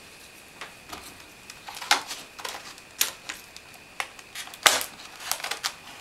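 Scissors snip through plastic packaging.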